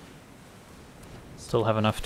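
A soft magical shimmer sounds as a spell takes effect.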